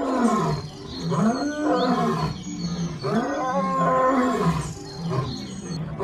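A lion roars loudly.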